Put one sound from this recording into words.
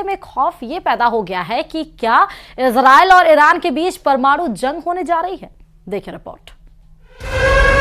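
A young woman speaks clearly into a microphone, reading out news.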